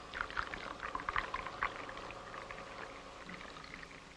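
Coffee pours into a cup.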